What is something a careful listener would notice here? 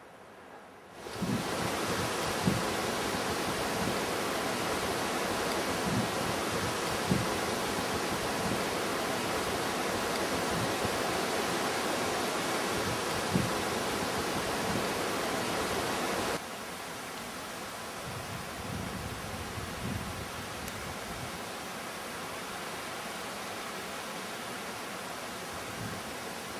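A mountain stream rushes over rocks.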